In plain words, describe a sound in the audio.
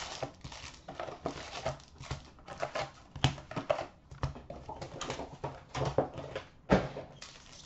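Hands rustle and shift cardboard boxes of trading cards.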